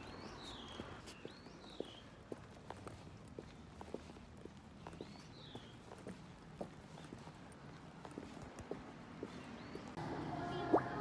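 Footsteps walk along a path outdoors.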